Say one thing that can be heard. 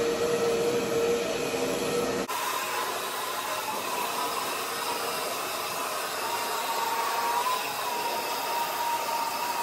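A hair dryer blows with a steady, loud whine close by.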